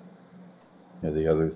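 A younger man speaks over an online call.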